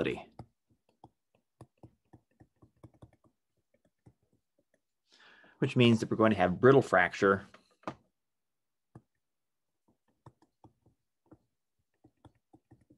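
A stylus taps softly on a tablet.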